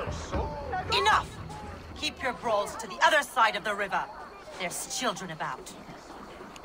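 A woman shouts angrily at close range.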